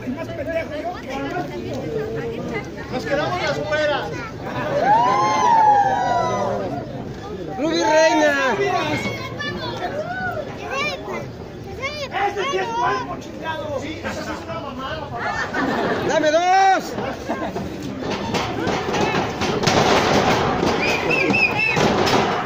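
A crowd of men and women shouts and chants loudly outdoors.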